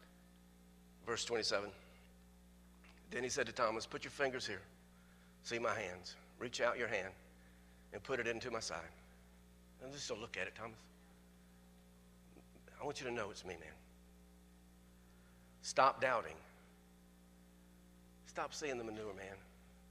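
A man reads aloud slowly through a microphone, in short phrases with pauses.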